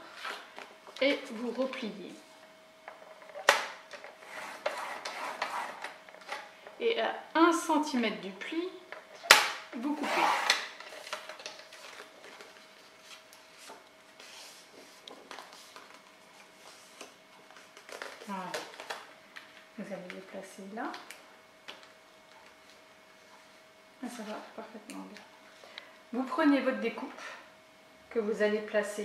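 Stiff card rustles and scrapes as it is handled.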